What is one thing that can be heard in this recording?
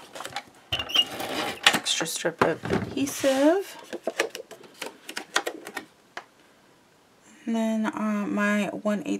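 Paper rustles and scrapes as it is handled.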